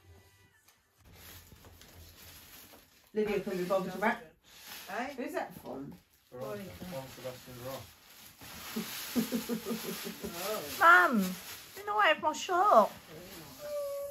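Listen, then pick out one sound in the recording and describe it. Wrapping paper rustles and tears.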